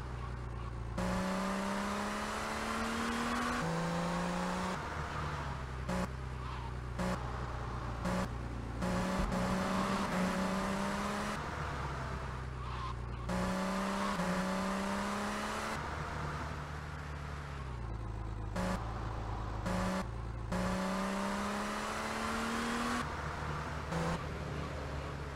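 A car engine revs up repeatedly, rising in pitch and dropping back with each gear change.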